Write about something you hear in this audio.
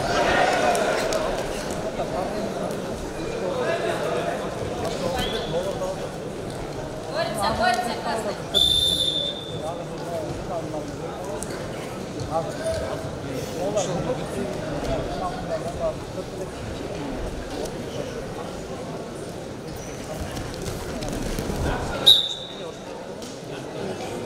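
Wrestlers' feet shuffle and thud on a mat.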